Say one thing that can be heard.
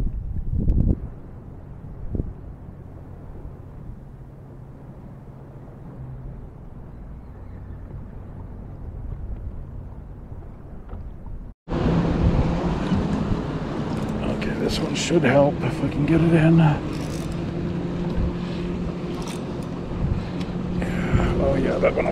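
Water rushes and laps against a small boat outdoors.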